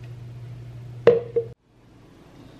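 A glass is set down on a stone counter with a knock.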